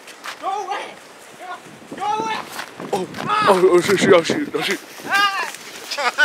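Young men shout and laugh excitedly outdoors.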